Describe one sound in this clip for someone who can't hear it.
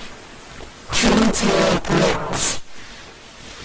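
A young boy talks loudly in a heavily distorted, echoing voice.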